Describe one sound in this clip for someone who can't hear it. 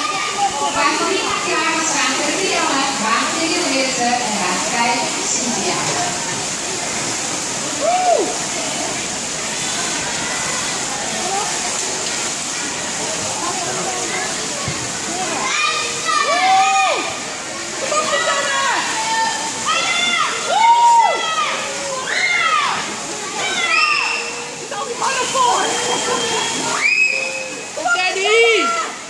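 A crowd chatters and calls out in an echoing hall.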